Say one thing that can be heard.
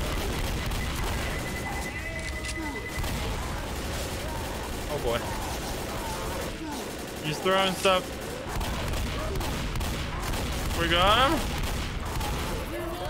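A shotgun fires repeatedly in loud blasts.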